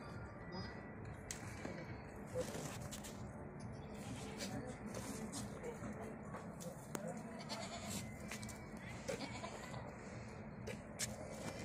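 Goats shuffle and rustle close together on dry ground.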